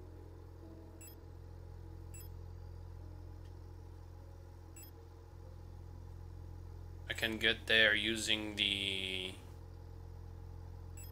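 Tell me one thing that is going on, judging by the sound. Soft electronic menu blips tick now and then.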